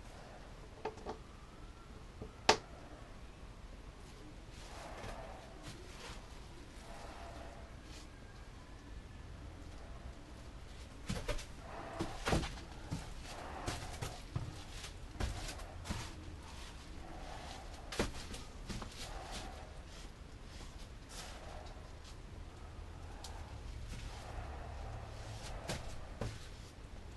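A paintbrush brushes wetly over a smooth surface.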